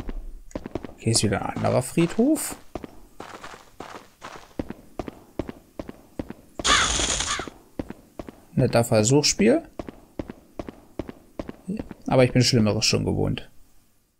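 A young man talks close to a headset microphone.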